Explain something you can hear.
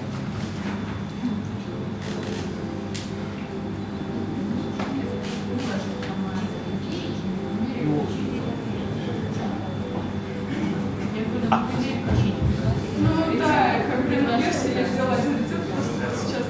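A young woman speaks calmly to a room.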